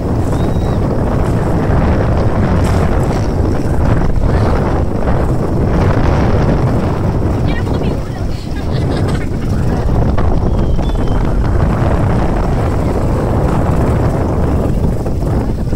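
Wind buffets loudly outdoors over open water.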